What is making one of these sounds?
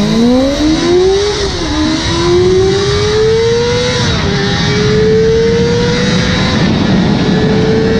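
Wind rushes past a motorcycle at speed.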